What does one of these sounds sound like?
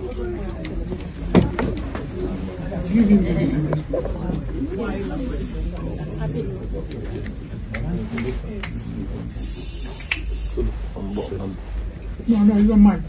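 A man speaks close by in a low voice.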